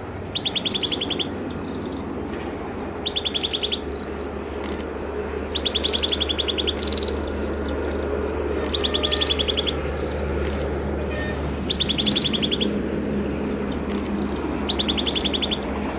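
A small bird sings short, rapid trills again and again close by.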